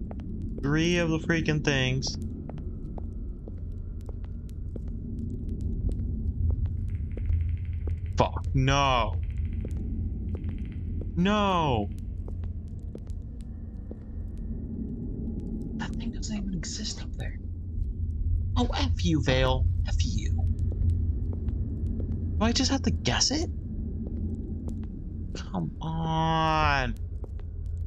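A torch flame crackles and roars softly.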